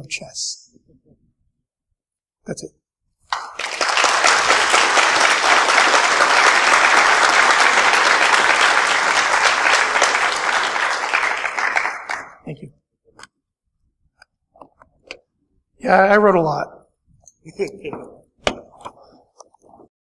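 A man speaks into a microphone in a large hall, with pauses.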